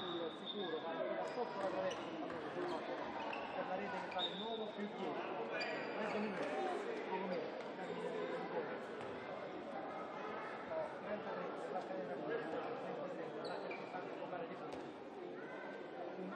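Shoes squeak sharply on a hard floor.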